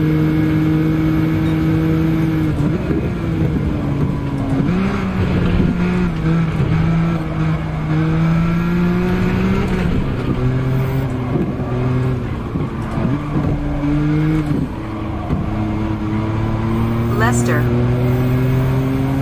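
A racing car engine drones loudly, rising and dropping in pitch as the gears shift.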